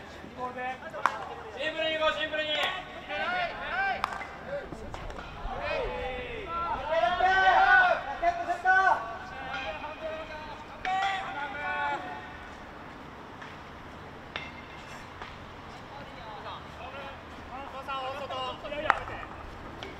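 A hockey stick sharply strikes a ball.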